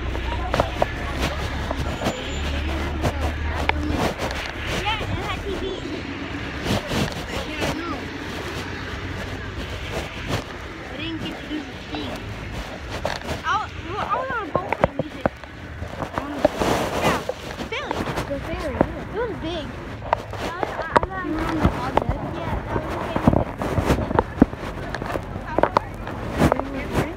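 Fingers rub and knock against a phone's microphone.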